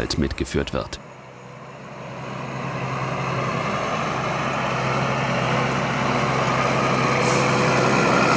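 A tractor engine rumbles steadily and grows louder as it approaches.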